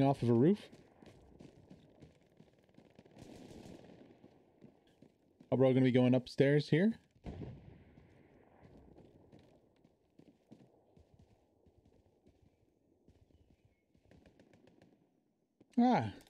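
Footsteps thud on wooden floors and stairs indoors.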